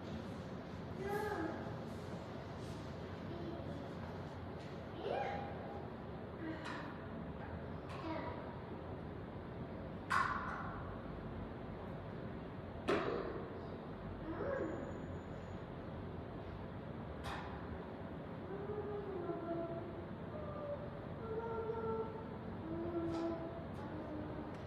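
An elderly man speaks quietly in a reverberant hall.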